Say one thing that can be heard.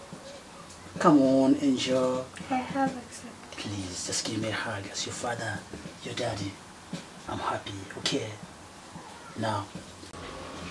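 A man speaks gently and closely.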